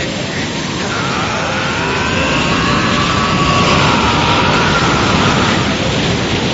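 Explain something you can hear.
A young man yells with strain.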